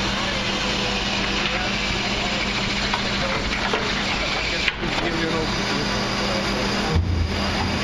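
A wheelie bin lifter whirs as it raises and tips a bin.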